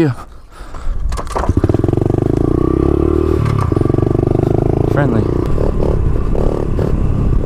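A small motorbike engine buzzes loudly and revs as it rides off.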